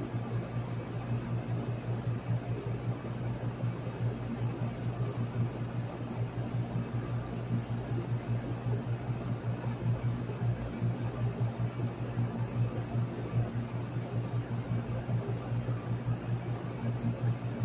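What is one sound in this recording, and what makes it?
An air conditioner fan hums and whirs steadily with a low drone.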